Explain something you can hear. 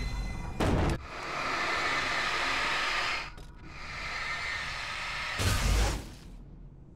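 A flare bursts and hisses loudly.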